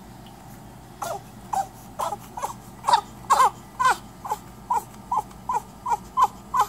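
A newborn baby cries in short, rhythmic wails close by.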